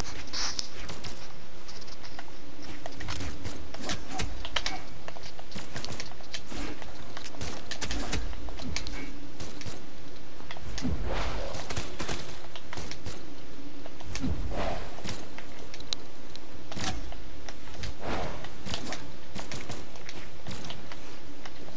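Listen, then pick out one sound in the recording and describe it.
Game hits and blasts crack again and again.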